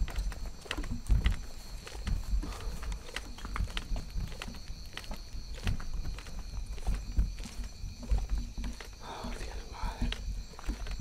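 Dry leaves and branches rustle and scrape close by.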